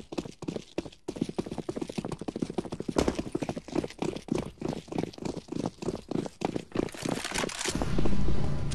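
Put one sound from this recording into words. Quick footsteps thud as players run.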